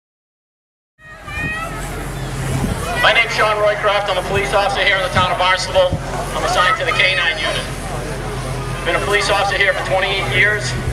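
A man speaks with animation through a microphone and loudspeaker outdoors.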